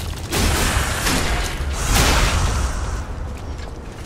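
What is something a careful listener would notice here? Metal blades clash with a ringing crash.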